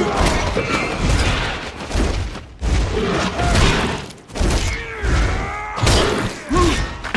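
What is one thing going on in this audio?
Spell blasts and weapon strikes crackle and thump in quick bursts.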